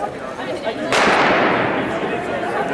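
A starting pistol fires with a sharp bang that echoes through a large indoor hall.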